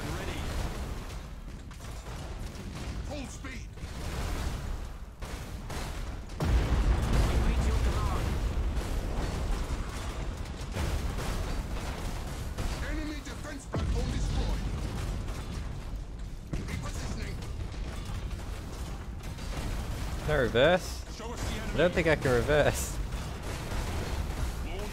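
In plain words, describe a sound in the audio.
Laser weapons fire in rapid bursts.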